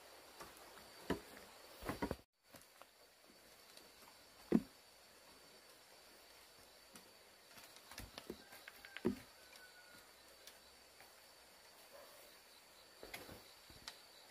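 Bamboo poles knock against each other.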